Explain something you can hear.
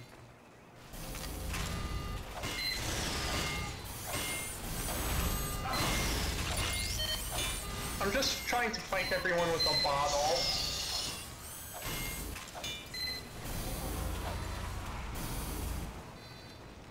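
A machine whirs and beeps as it builds up.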